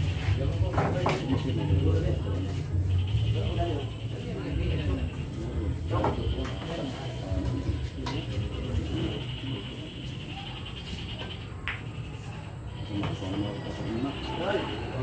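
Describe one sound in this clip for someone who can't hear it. Billiard balls knock together on a pool table.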